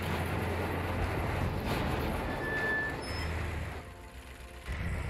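A tank engine rumbles and clanks.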